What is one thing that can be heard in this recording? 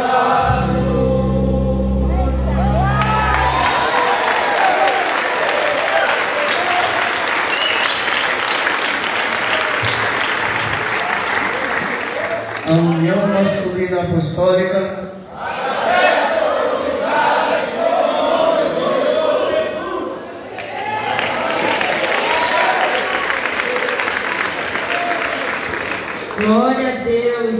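A male choir sings together in a large echoing hall.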